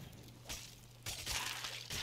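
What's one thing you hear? A gun fires a single shot.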